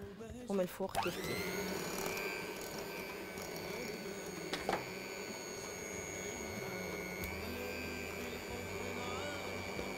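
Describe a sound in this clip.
An electric hand mixer starts up and whirs steadily, beating batter in a bowl.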